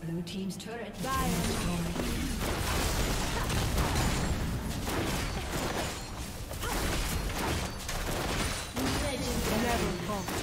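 Magic spells crackle and whoosh in a game battle.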